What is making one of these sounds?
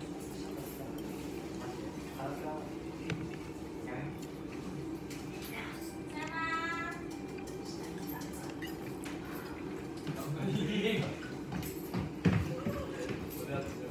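A man chews food with his mouth closed.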